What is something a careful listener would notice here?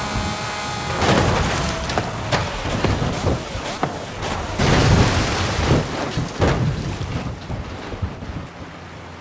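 A car crashes and tumbles, with loud metallic bangs and crunches.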